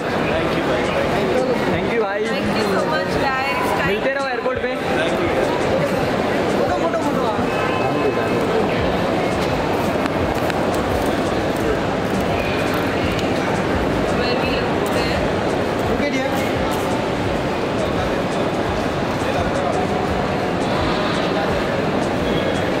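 A crowd of voices chatters and calls out all around.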